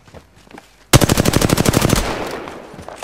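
An automatic rifle fires a rapid burst in a video game.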